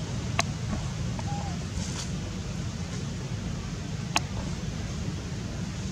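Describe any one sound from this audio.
A young monkey chews food softly.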